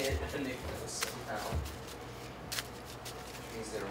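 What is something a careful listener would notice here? Playing cards riffle and slap softly as they are shuffled in hand.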